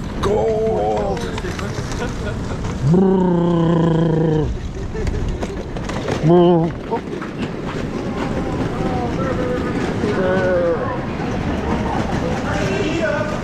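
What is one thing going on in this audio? Suitcase wheels roll and rattle over pavement.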